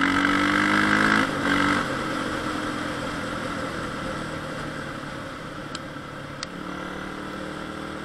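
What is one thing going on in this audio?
A dirt bike engine revs loudly close by, then eases off.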